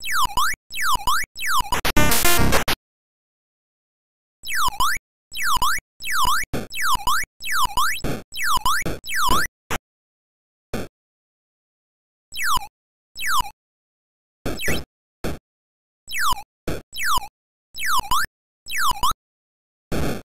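Short electronic bleeps dip down and swoop back up, over and over, as a game character bounces.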